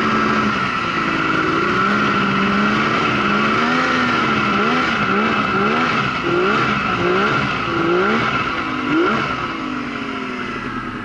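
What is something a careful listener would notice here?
A snowmobile engine revs up and down repeatedly.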